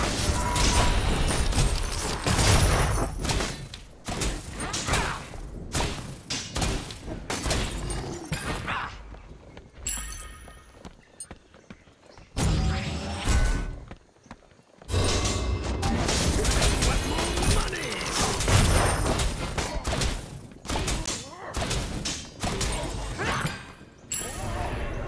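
Game weapons strike enemies with thuds and impacts.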